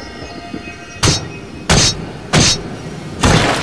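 A metal blade swishes and clangs in sharp strikes.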